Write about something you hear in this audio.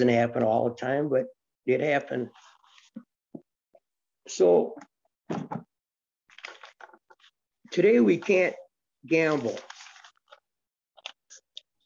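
An elderly man speaks calmly and close up, in short phrases with pauses.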